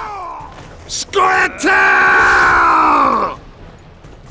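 A man screams loudly in alarm.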